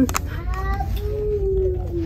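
A plastic blister package crinkles and clicks in a hand.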